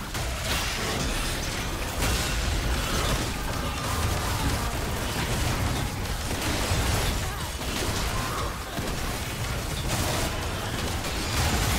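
Spell effects and attacks crackle and boom in a fight.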